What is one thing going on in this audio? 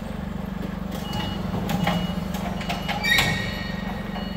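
A forklift's metal forks clank and rattle.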